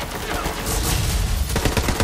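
Explosions crackle and pop in quick succession.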